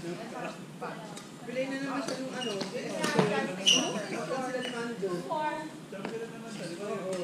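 Young women talk and call out in a large echoing hall.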